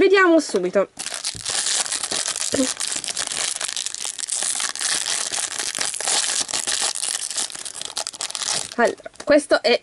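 A foil wrapper crinkles and tears loudly.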